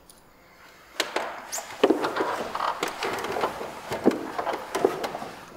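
Children's footsteps knock on a wooden stage.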